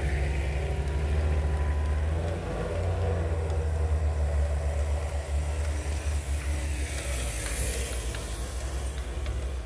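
An off-road vehicle's engine rumbles low as it climbs a snowy track.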